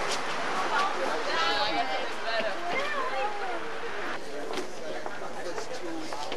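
Several young men and women talk and call out to each other outdoors.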